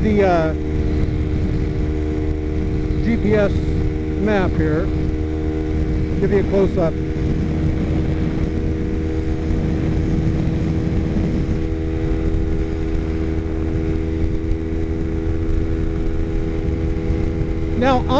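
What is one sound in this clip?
Wind rushes and buffets past the rider.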